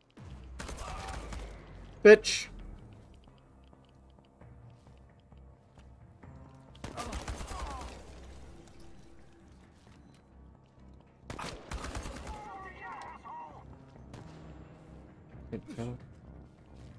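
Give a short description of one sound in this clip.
A gun fires loud shots close by.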